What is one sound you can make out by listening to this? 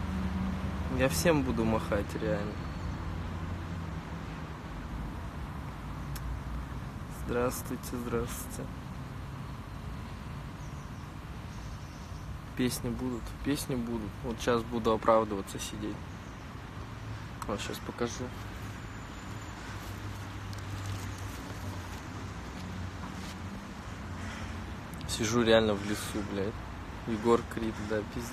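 A young man talks casually and close to a phone's microphone, with pauses.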